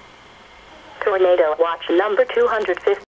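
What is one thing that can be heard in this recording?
An automated voice reads out a message through a small radio loudspeaker.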